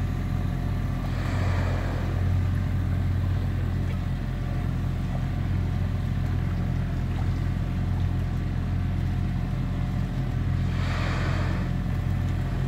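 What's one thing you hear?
A whale blows out a loud, breathy whoosh of air in the distance.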